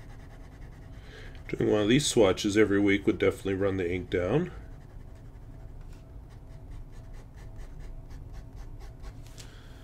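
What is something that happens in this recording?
A pen nib scratches lightly on paper.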